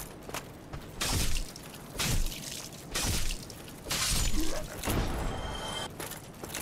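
Heavy sword blows whoosh and strike.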